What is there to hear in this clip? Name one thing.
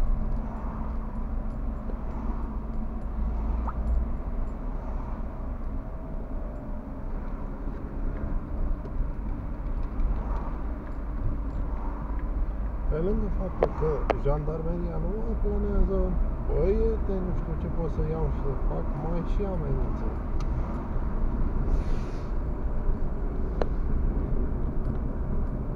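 A car drives steadily along a road, heard from inside as a low, constant rumble.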